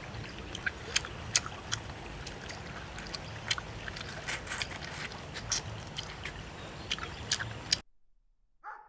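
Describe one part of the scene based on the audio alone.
A man crunches and chews food loudly, close by.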